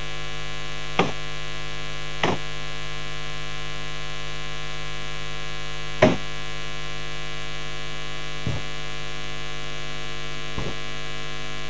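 Dancers' feet thump now and then on a wooden stage.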